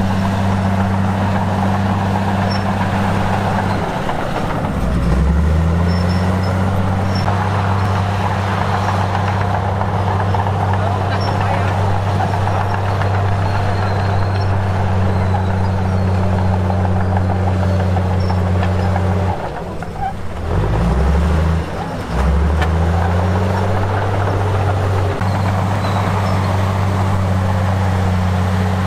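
Soil scrapes and tumbles under a bulldozer blade.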